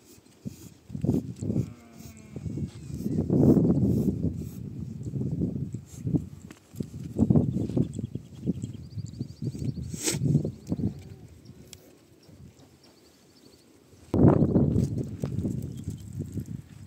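Sheep bleat loudly close by.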